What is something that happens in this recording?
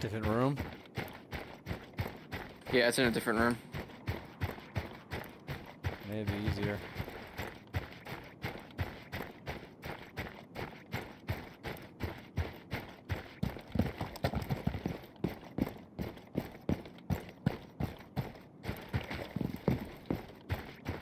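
Footsteps crunch steadily on snow.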